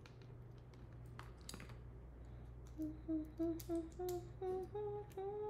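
Small objects click and rustle as hands handle them up close.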